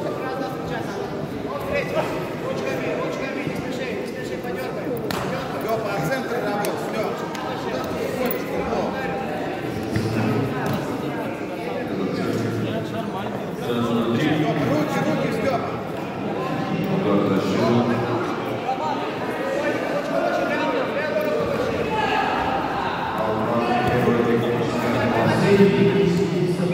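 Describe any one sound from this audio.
A crowd of spectators chatters and shouts throughout a large echoing hall.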